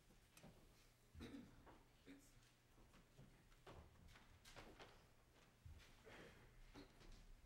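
An elderly man speaks quietly into a microphone in an echoing hall.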